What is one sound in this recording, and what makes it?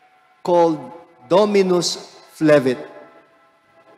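A middle-aged man speaks calmly into a microphone in a large, echoing room.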